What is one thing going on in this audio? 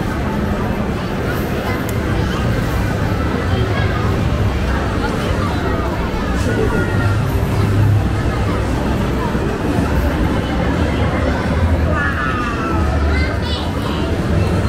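A crowd chatters in a busy, noisy hall.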